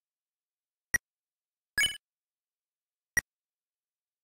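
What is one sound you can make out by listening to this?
Short electronic menu clicks sound a few times.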